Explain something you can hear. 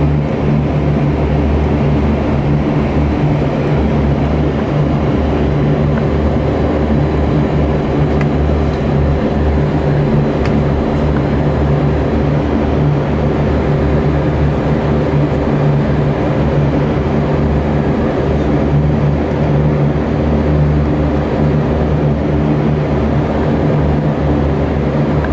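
A propeller engine drones loudly and steadily from close by, heard from inside an aircraft cabin.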